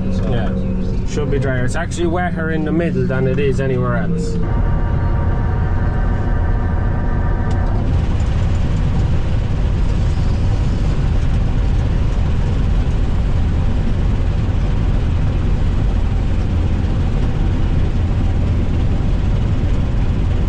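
A combine harvester's engine rumbles steadily up close, heard from inside the cab.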